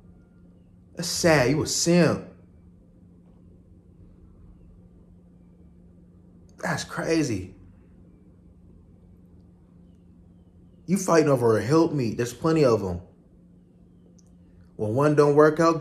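A young man speaks calmly in short bursts close to the microphone.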